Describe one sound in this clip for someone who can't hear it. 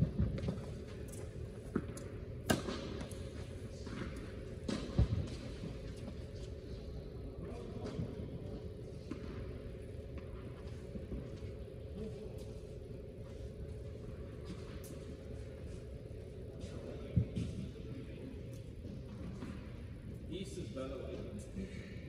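Sneakers squeak and shuffle on a hard court.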